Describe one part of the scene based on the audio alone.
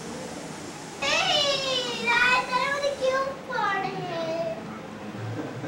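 A young girl talks with animation into a phone, close by.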